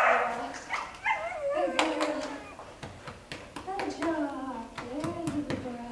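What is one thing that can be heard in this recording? A woman praises a dog in a high, lively voice.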